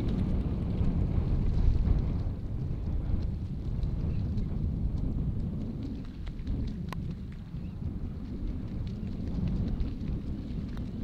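Wind blows across the open outdoors, rumbling steadily.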